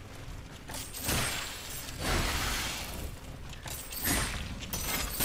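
Blades swish and strike in a fight.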